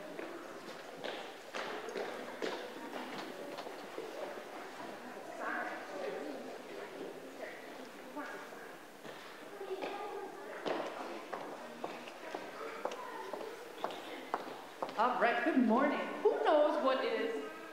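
A woman speaks into a microphone in a large echoing hall.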